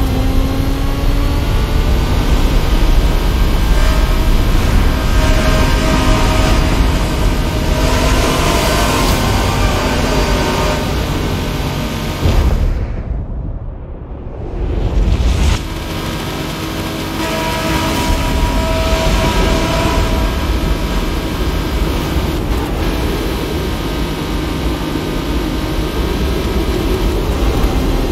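A racing car engine roars at high speed, its pitch rising and falling as the car shifts gears.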